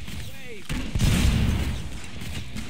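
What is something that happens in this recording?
A grenade explodes with a deep boom.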